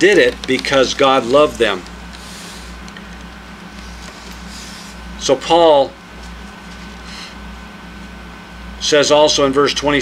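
An elderly man speaks calmly close by, with pauses.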